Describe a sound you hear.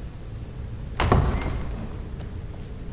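A heavy wooden door thuds open with a rumbling echo.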